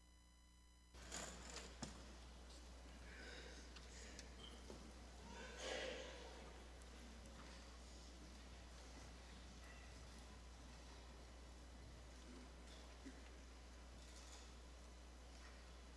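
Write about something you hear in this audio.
An audience murmurs quietly in a large, echoing hall.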